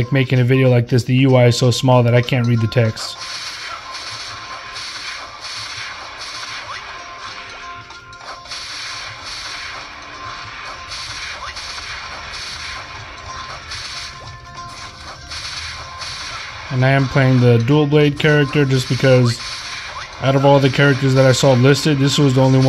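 Upbeat electronic game music plays through a small speaker.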